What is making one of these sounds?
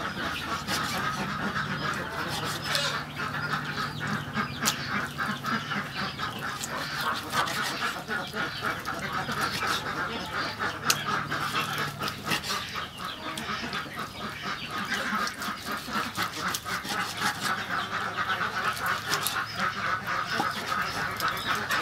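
A cleaver chops through meat onto a wooden board with dull knocks.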